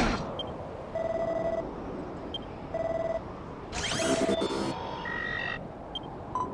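Short electronic beeps chime in quick bursts.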